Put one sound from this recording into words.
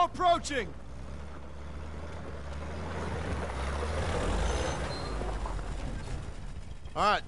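A jeep engine rumbles as it drives.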